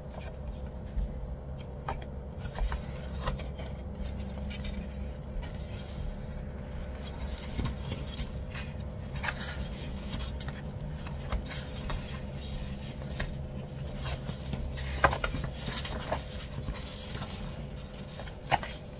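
Sticker sheets rustle and crinkle as a hand handles them close by.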